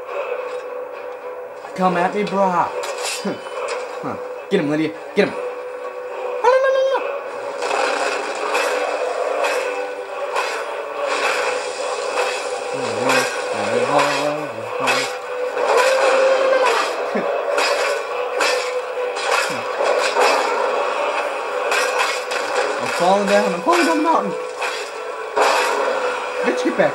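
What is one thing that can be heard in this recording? Battle noises play loudly through a small television speaker.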